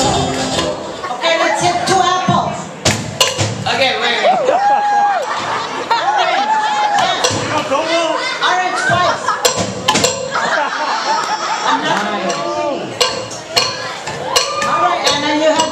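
A crowd cheers, whoops and shouts loudly in a hall.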